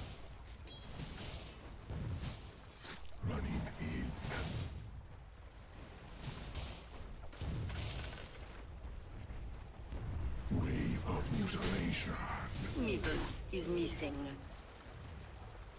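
Magical blasts and clashing combat effects crackle and boom in bursts.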